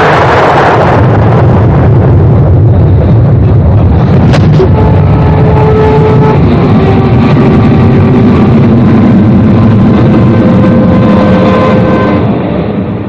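A jet plane roars loudly overhead.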